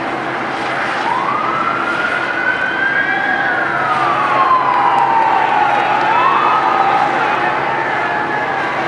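A police siren wails nearby, rising and falling.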